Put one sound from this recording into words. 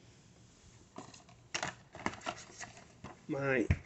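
A cardboard box rustles and taps as it is handled.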